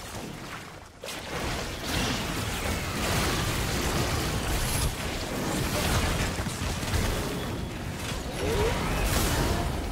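Video game spell effects whoosh, crackle and blast in a busy fight.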